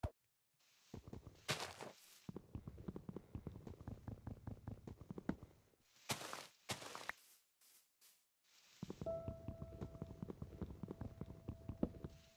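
Blocks are dug with repeated soft scratching taps.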